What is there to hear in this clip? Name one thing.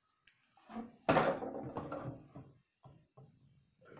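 A box thumps down on a wooden table.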